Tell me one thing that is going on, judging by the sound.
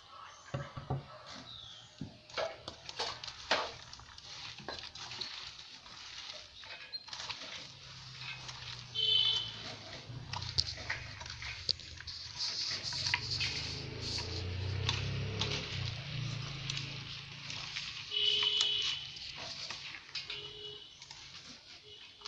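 A hand squishes and crunches a moist grainy mixture in a metal bowl.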